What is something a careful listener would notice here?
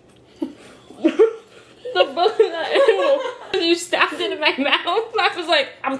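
Two young women laugh loudly close by.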